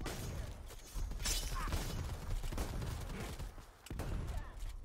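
Gunfire from a video game rattles in quick bursts.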